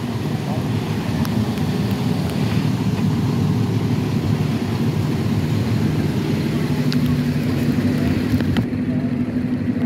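A fire engine's diesel motor idles nearby with a low, steady rumble.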